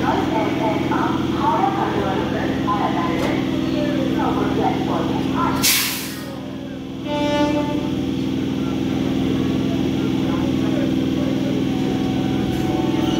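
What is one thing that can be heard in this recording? A train's engine hums steadily.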